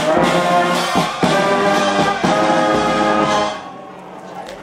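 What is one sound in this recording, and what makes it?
A brass band plays a loud march outdoors.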